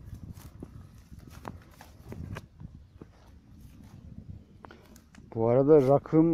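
Footsteps crunch on dry grass and stones.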